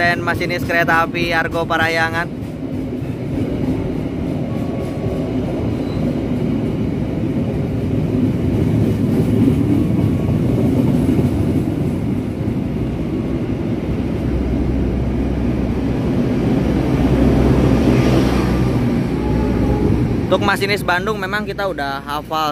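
An electric commuter train rolls past close by, its steel wheels rumbling on the rails.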